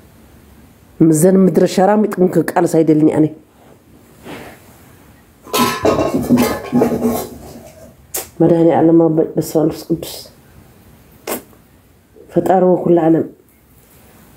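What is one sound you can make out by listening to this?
A woman speaks with animation in short bursts.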